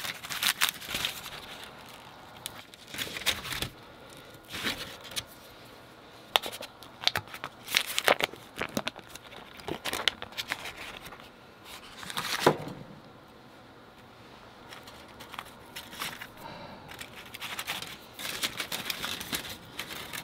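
Foil crinkles and rustles.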